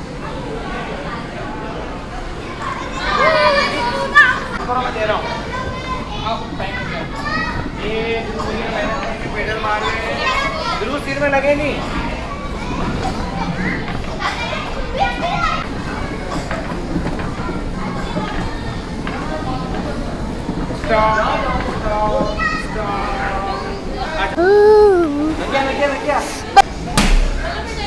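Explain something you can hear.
Young children shout and chatter excitedly nearby.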